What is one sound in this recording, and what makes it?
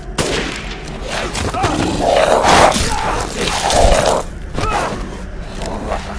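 A monster growls and roars up close.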